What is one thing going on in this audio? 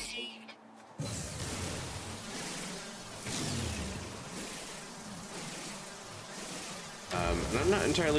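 A mining laser buzzes steadily.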